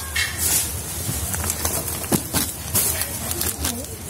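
A heavy paper sack of flour thumps down into a wire shopping cart.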